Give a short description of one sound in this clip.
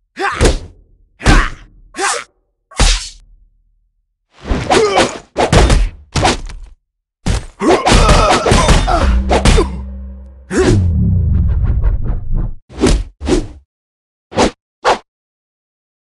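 Blades swish and strike in a fast fight.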